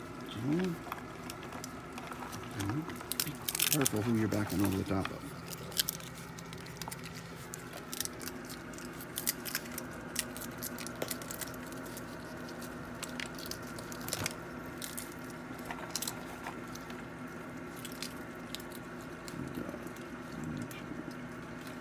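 Raccoons chitter and squeal.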